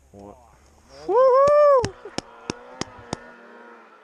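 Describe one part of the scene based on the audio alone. A snowmobile engine revs up loudly and roars away.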